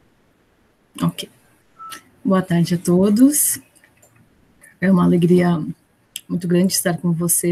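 A woman speaks with animation over an online call.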